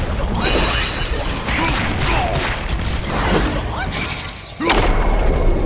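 Heavy blows strike with sharp thuds.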